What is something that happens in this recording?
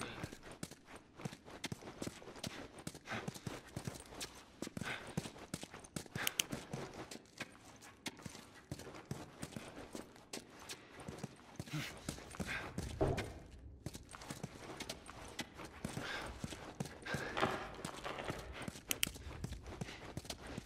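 Footsteps crunch over scattered debris on a hard floor.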